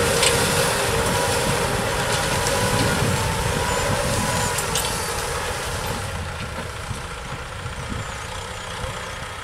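Plough discs scrape and crunch through dry soil.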